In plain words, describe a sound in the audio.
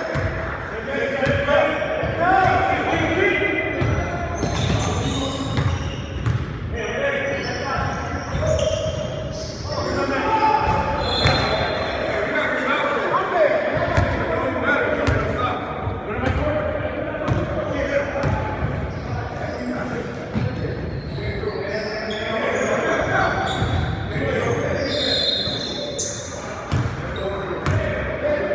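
Young men shout and call out to each other across the hall.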